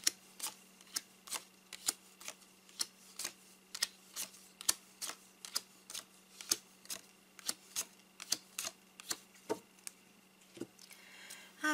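Playing cards slap down onto a table in quick succession.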